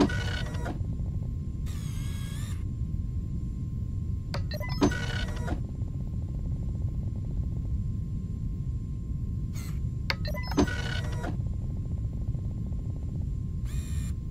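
A terminal prints text with rapid soft ticking.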